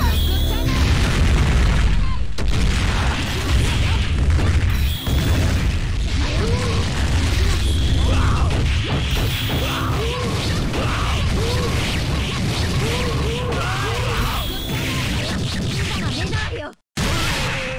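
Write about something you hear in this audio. Punches and kicks land in rapid hits with loud bursts of energy.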